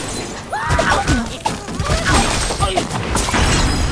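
Wooden and stone blocks crash and clatter as a tower collapses.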